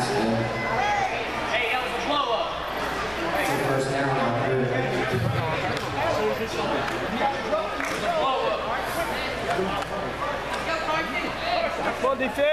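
A crowd of spectators talks and cheers nearby.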